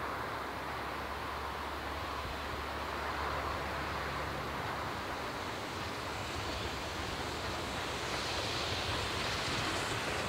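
A steam locomotive chuffs steadily as it approaches, growing louder.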